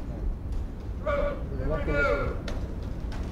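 A man calls out a command loudly outdoors.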